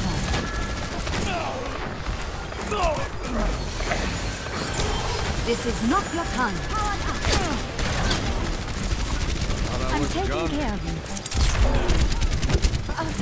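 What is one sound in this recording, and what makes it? Game weapons fire in rapid bursts.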